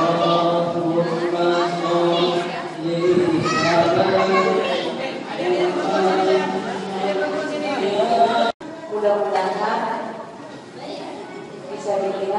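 A crowd of children chatters.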